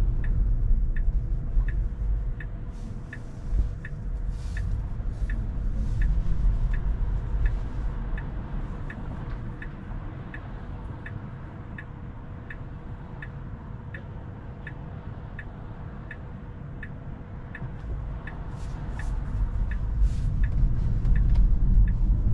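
A car's turn signal ticks steadily from inside the car.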